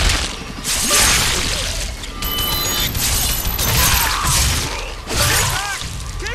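Heavy blows thud and slash in a violent fight.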